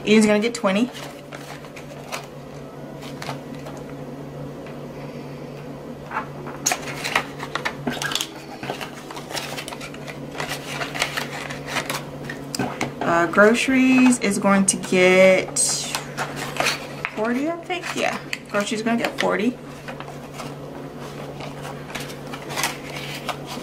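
Paper banknotes rustle and flick as they are handled.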